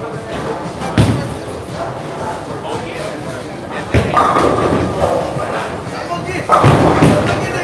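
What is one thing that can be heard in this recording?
Bowling pins crash loudly in a large echoing hall.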